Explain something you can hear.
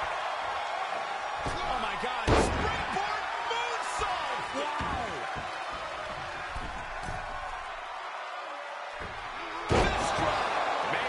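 A large crowd cheers and roars steadily in an arena.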